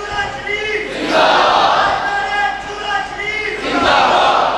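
A large crowd of men shouts and cheers loudly in bursts.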